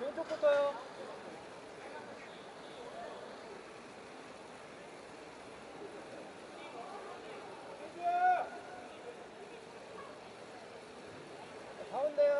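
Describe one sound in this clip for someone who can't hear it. Young women call out cheerfully in high voices outdoors.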